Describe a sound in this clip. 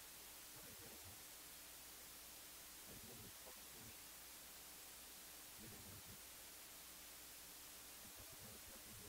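A man preaches with animation into a microphone in a large echoing hall.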